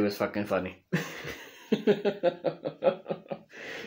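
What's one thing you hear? A young man laughs close to the microphone.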